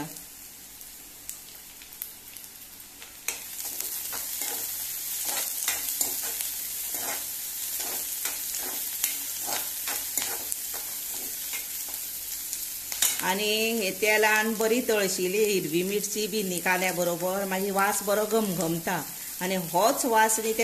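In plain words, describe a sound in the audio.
A metal spatula scrapes and taps against a pan.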